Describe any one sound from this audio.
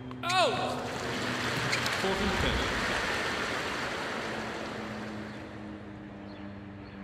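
A crowd applauds and slowly dies down.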